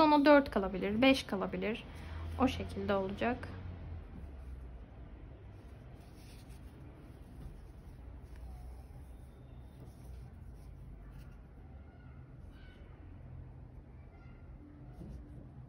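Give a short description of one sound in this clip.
Crocheted yarn rustles softly as it is handled and pulled.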